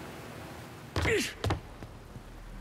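A body lands with a heavy thud on a hard floor.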